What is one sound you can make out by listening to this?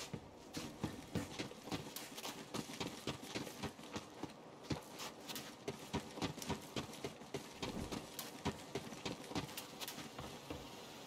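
Footsteps thud quickly and steadily on the ground.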